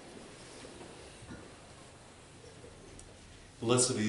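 A metal dish clinks on a table.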